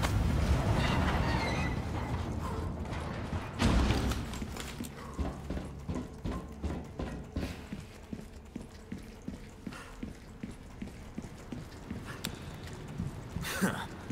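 Footsteps thud steadily on a metal walkway.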